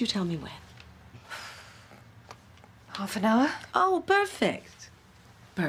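A woman speaks tensely up close.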